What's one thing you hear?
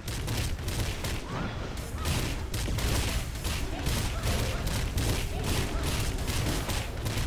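Fiery magic blasts and weapon strikes crackle and boom.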